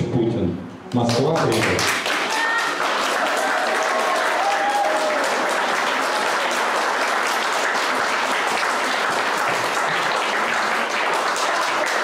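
An audience applauds warmly.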